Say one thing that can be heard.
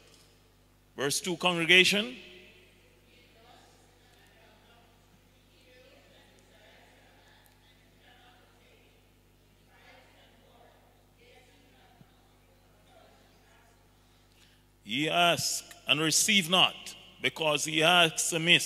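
A man reads aloud through a microphone.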